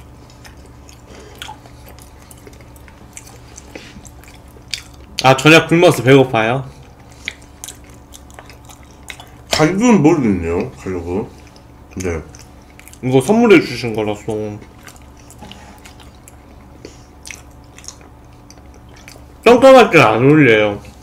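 Young men chew food noisily close to a microphone.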